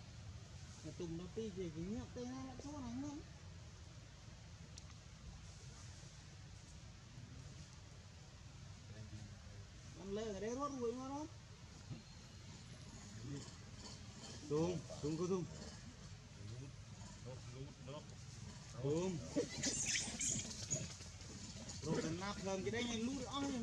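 A baby monkey squeals and whimpers in short bursts.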